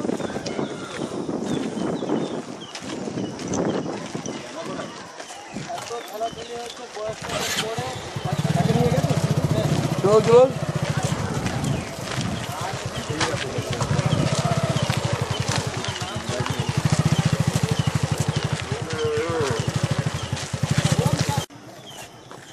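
Several men talk and call out loudly outdoors as a crowd moves along.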